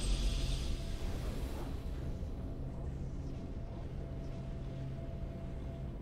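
A triumphant game victory fanfare plays with a deep steady drone.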